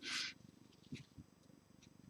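Fabric rustles under a hand.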